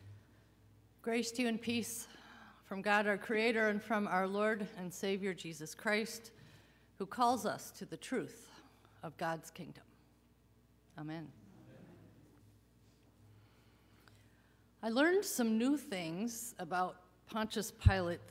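An elderly woman speaks with feeling into a microphone in an echoing hall.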